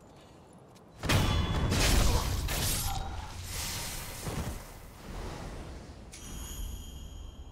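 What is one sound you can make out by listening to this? Swords clash and strike during a fight.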